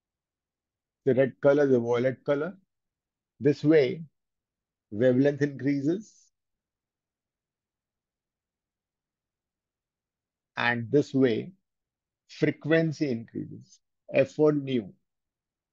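A man speaks calmly through a headset microphone, in short phrases with pauses.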